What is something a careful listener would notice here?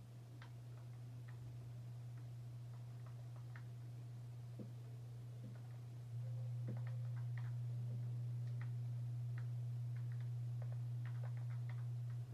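A video game plays soft clicks and thuds of blocks being placed, heard through a television speaker.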